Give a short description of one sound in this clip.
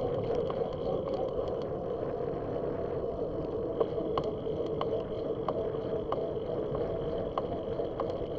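Tyres roll over a rough paved road.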